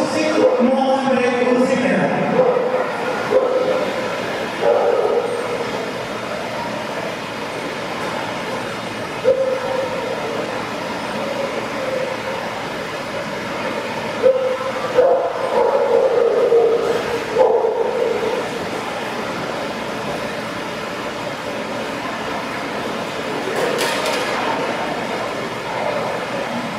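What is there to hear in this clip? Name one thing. A man calls out short commands to a dog.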